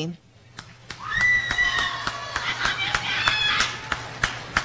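Shrill whistles ring out from a crowd.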